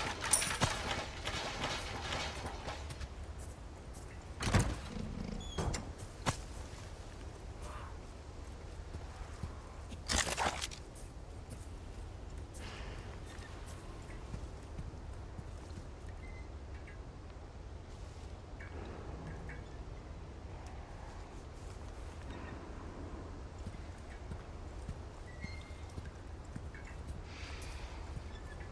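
Footsteps crunch on dirt and gravel.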